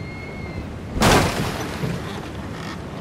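A heavy thump as a body lands in a pile of hay.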